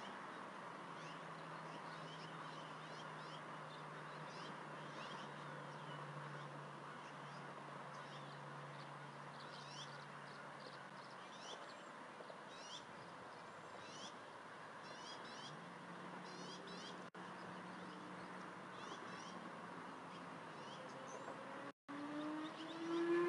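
An eagle shifts on a nest of sticks, rustling twigs softly.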